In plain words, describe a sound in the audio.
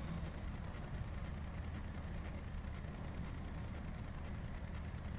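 A machine engine idles with a steady low rumble.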